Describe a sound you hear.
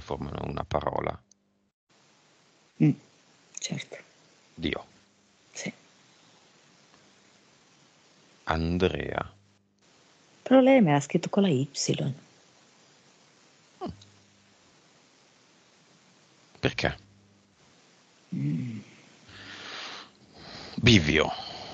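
A man speaks in short bursts through a headset microphone on an online call.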